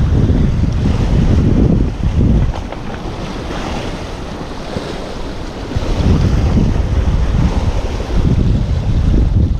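Wind gusts and rumbles against a nearby microphone.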